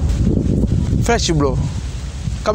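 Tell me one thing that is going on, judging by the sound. A man speaks loudly close by.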